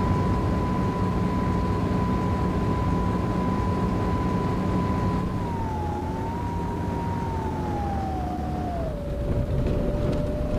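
A bus engine hums steadily, its pitch dropping as the bus slows.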